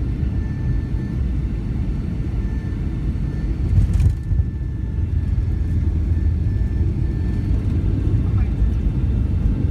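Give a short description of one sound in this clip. Wheels rumble low on a runway.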